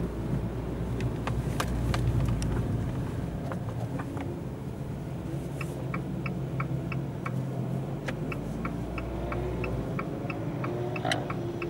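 Raindrops tap on a windscreen.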